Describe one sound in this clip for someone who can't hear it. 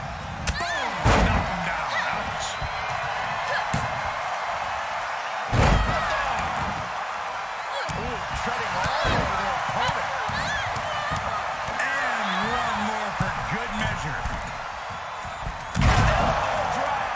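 A wrestler slams heavily onto the ring mat with a loud thud.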